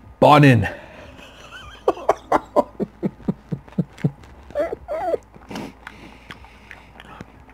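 A man chews food with wet smacking sounds.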